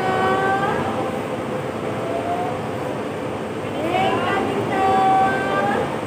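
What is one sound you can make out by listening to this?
A bus engine idles close by with a steady low rumble.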